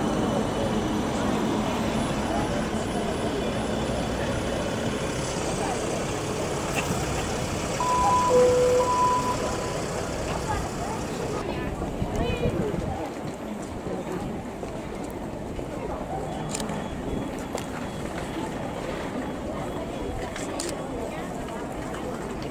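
A tram rumbles along its rails nearby.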